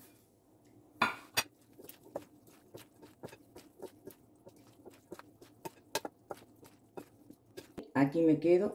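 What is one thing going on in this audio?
A spatula scrapes and clicks against a glass bowl.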